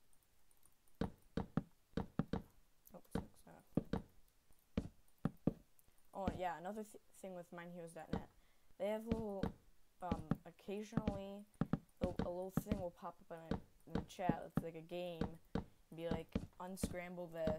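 Wooden blocks knock softly as they are placed one after another.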